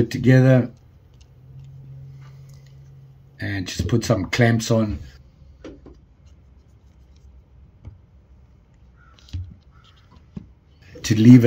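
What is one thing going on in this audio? A plastic clamp clicks as it is squeezed tight.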